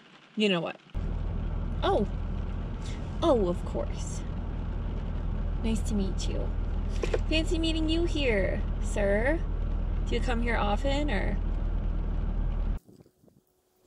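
A car engine hums low and steadily inside the car.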